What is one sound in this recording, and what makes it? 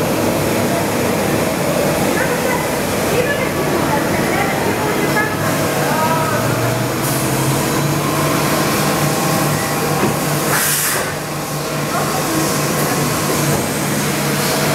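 A machine tool whirs and hums steadily behind glass.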